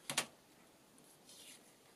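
A sponge dabs and rubs softly on paper.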